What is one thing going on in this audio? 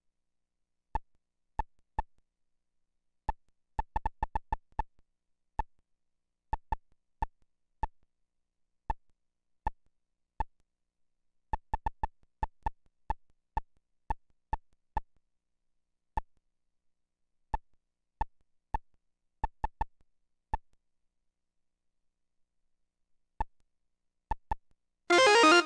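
Short electronic beeps blip one after another, sometimes in quick bursts.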